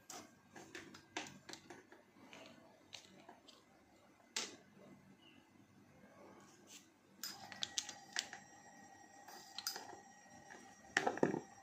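A metal socket wrench clinks and scrapes against a nut.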